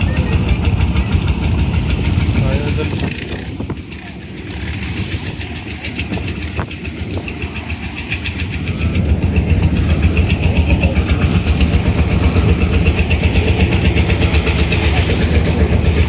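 A tractor engine chugs loudly nearby.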